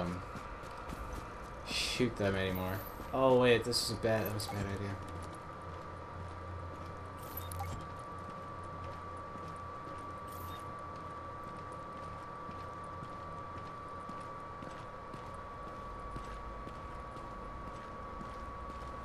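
Footsteps crunch through snow and tap on a hard floor at a steady walking pace.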